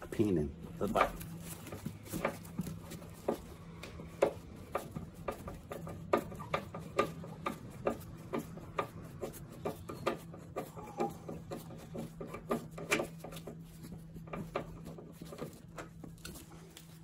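A screwdriver clicks and scrapes against plastic trim in repeated small taps.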